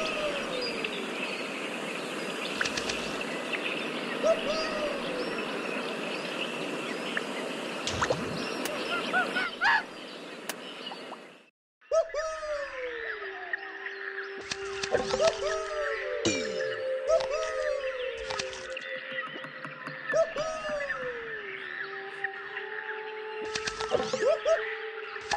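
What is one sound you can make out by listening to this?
Game chimes blip quickly as coins are collected.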